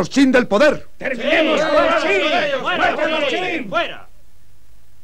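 A crowd of men shouts together.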